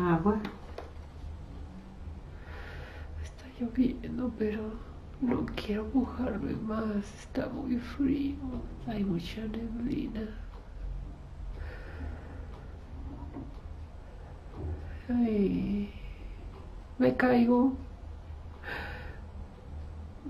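A woman speaks softly, close by.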